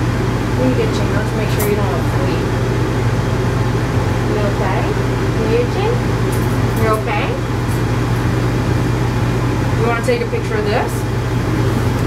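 A woman talks softly and calmly close by.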